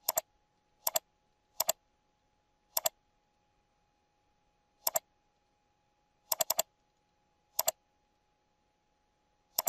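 A computer mouse clicks sharply, mostly in quick pairs.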